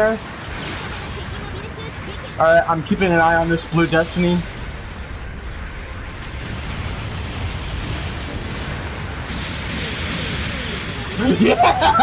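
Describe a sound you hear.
Heavy gunfire booms in bursts.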